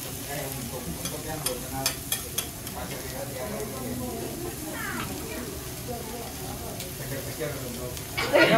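Metal spatulas clink and scrape on a hot griddle.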